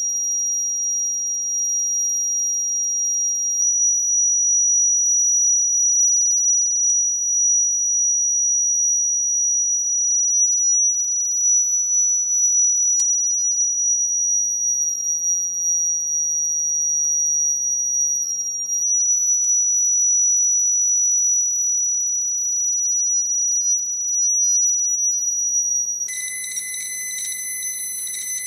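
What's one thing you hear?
A high, steady electronic tone plays through loudspeakers.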